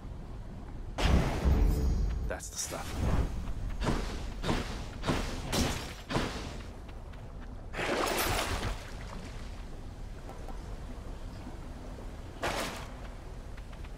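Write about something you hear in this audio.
Game sound effects whoosh and clash in quick bursts.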